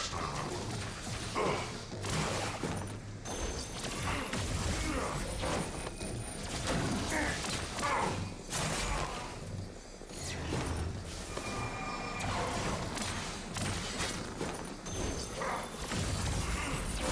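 Blasts and impacts crash in a fight.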